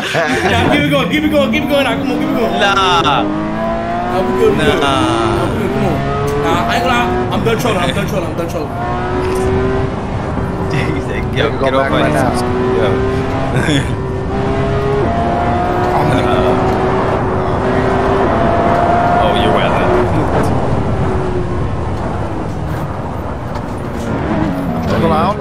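A car engine revs and roars, rising and falling in pitch as gears shift.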